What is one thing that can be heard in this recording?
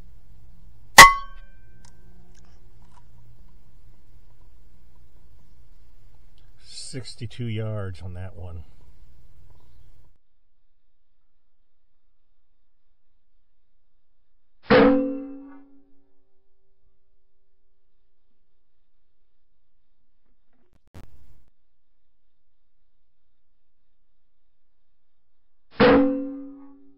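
An air rifle fires with a sharp, short crack, several times.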